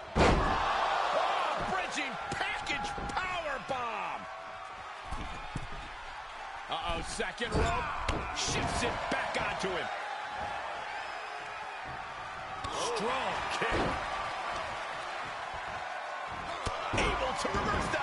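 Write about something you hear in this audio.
Wrestlers' bodies thud heavily onto a ring mat.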